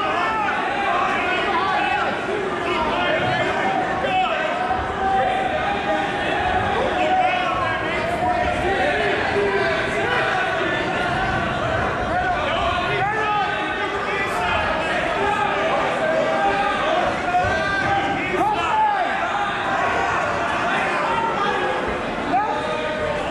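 A crowd of spectators chatters and calls out, echoing in a large hall.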